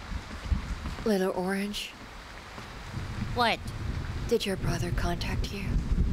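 A woman speaks calmly and quietly, close by.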